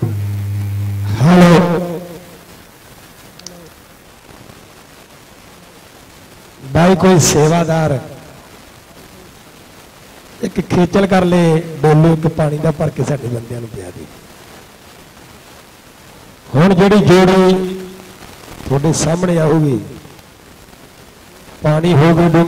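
A man sings loudly through a microphone and loudspeakers, in long drawn-out phrases with pauses between.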